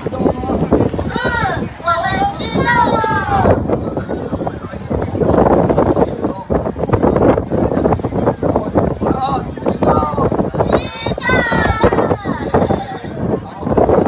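Women in a crowd scream in alarm.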